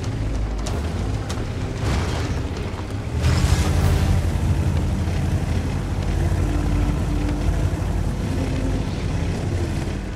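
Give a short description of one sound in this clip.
A heavy tank engine rumbles low and steady as the tank drives.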